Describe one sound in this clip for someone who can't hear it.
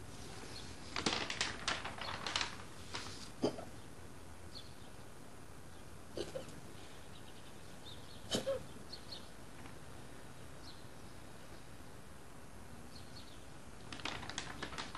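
Newspaper pages rustle as they are turned.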